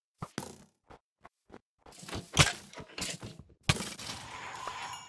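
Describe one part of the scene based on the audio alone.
A sword strikes a skeleton with sharp hits.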